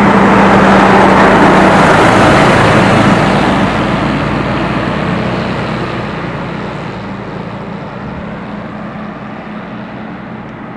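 A fire truck's diesel engine idles close by and grows fainter.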